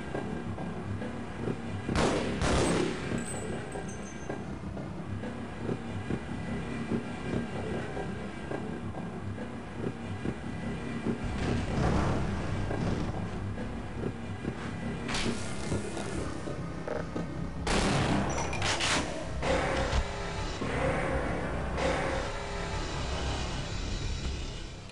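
A tram rumbles and clatters steadily along its rails through an echoing tunnel.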